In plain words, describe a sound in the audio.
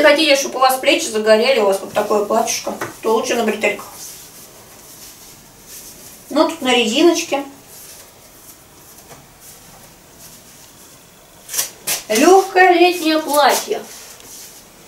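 A young woman speaks calmly nearby, in short bursts with pauses.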